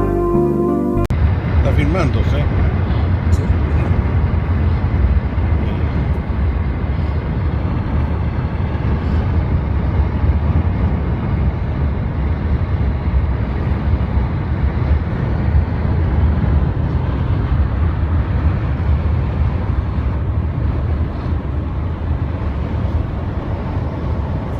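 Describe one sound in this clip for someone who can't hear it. A car drives along a paved highway, with a low road rumble heard from inside the cabin.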